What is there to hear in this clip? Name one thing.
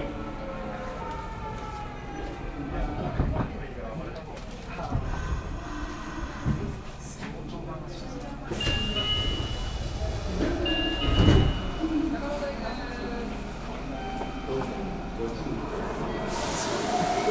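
A train idles with a low, steady hum.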